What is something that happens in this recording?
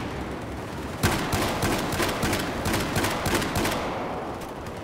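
Rapid gunfire rattles loudly in an echoing tunnel.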